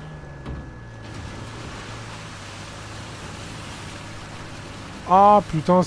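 A vehicle splashes through shallow water.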